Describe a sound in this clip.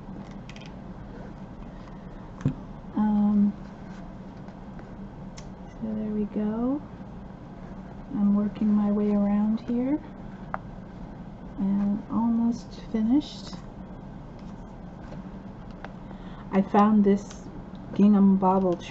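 Fabric rustles softly as hands turn it.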